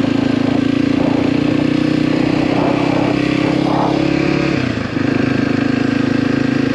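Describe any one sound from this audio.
A motorcycle engine drones steadily close by, briefly dropping and picking up again.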